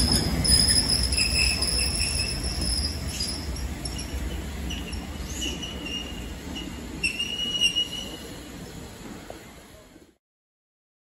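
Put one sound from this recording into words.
A steam locomotive chuffs and rumbles past on the tracks.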